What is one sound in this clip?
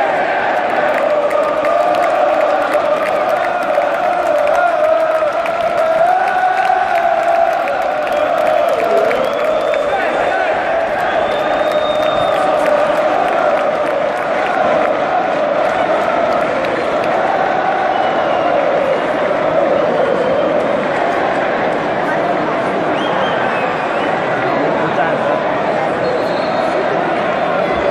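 Spectators nearby shout and cheer.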